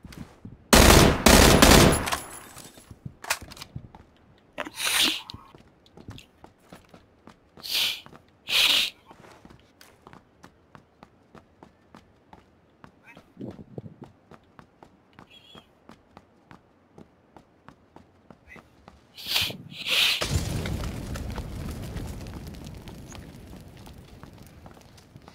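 Footsteps tap quickly on hard floors and stairs.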